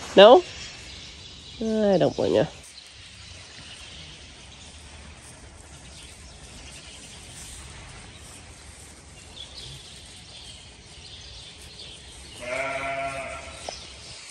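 Lambs bleat loudly close by.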